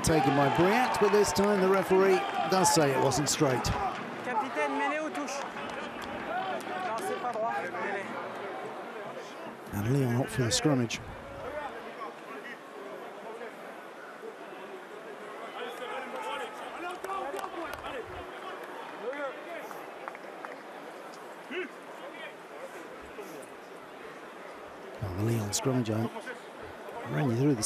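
A large crowd murmurs in an open stadium.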